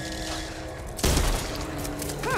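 A shotgun fires with a single loud blast.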